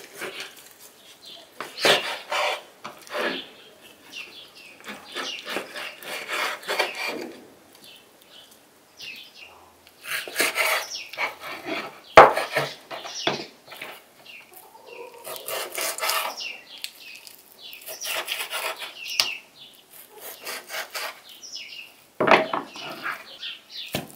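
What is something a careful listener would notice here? A knife cuts through raw beef on a wooden cutting board.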